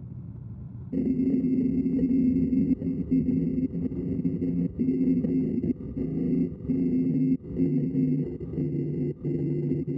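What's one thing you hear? A lathe chisel scrapes and cuts into spinning wood.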